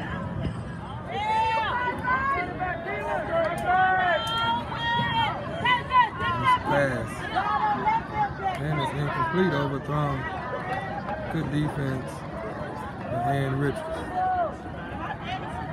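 A crowd of spectators cheers and shouts nearby, outdoors.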